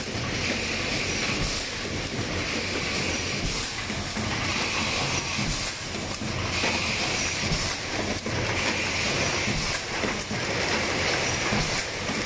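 Compressed air hisses in short, repeated bursts.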